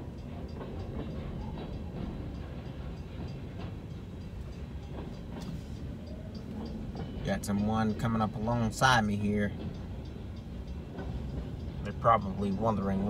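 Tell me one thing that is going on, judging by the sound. A freight train rumbles steadily past nearby.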